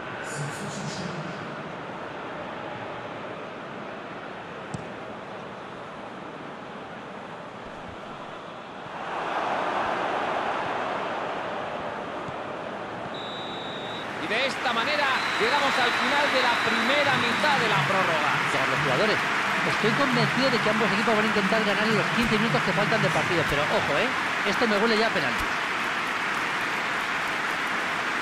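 A large stadium crowd roars and murmurs steadily, growing louder partway through.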